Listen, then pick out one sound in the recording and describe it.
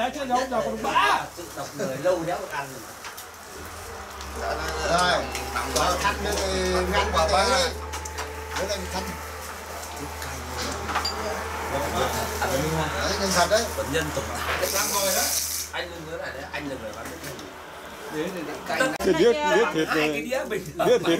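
Several men and women talk and laugh casually nearby.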